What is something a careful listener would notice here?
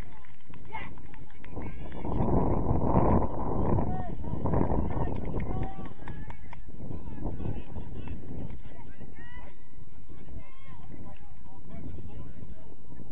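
Young men shout to one another from across a football pitch.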